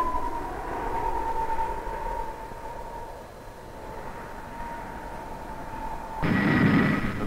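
A propeller plane's engine whines steadily as it dives, its pitch slowly dropping.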